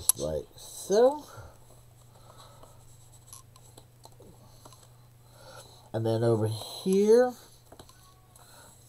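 Paper pages rustle and slide softly.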